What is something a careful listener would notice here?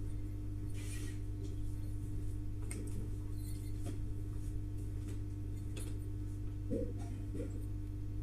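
Cloth rustles softly as it is folded.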